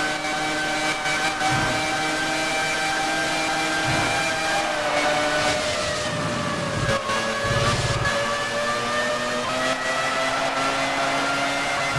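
Tyres hiss through spray on a wet track.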